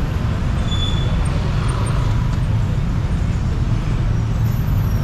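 Motorbikes and cars drive past on a busy street.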